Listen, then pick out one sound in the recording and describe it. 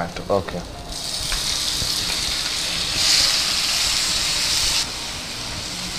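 Tomatoes sizzle in hot oil in a frying pan.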